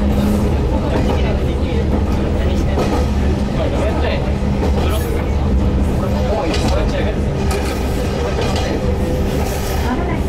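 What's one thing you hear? A train engine rumbles steadily.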